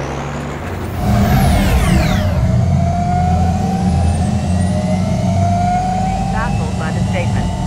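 A sports car engine roars loudly as the car speeds past.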